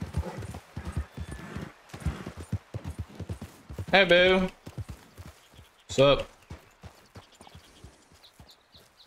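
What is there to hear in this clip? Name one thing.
Horse hooves thud steadily on the ground.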